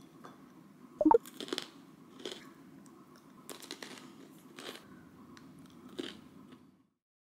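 Pretzels crunch between a young woman's teeth, up close.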